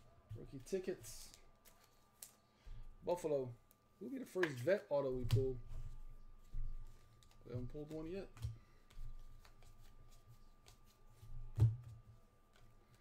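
Cardboard trading cards rustle and slide against each other in someone's hands.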